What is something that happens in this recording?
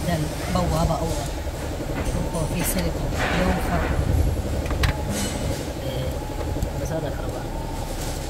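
A screwdriver scrapes and clicks against metal parts.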